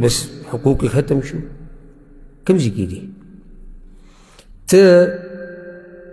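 A man speaks with animation into a microphone in an echoing room.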